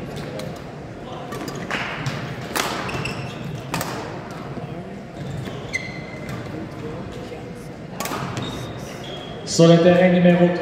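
Badminton rackets strike a shuttlecock back and forth in a large echoing hall.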